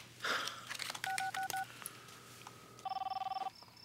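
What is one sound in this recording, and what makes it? A phone keypad beeps as buttons are pressed.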